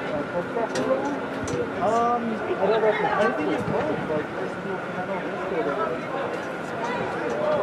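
Children and adults chatter at a distance in a large echoing hall.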